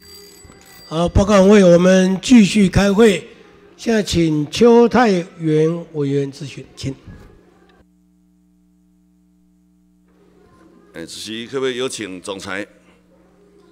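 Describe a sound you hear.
A man speaks over a loudspeaker in a large echoing hall.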